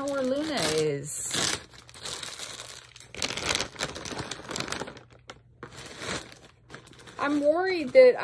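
A plastic mailer bag rustles and crinkles.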